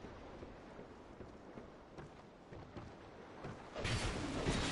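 Footsteps thud on creaking wooden boards.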